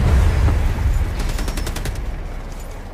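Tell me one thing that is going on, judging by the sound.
Rapid gunfire crackles in bursts.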